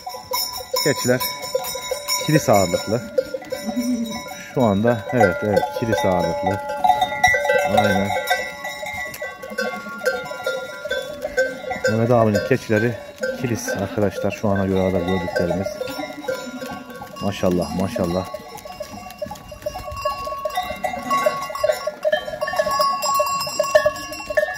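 Many hooves shuffle and patter on dry ground.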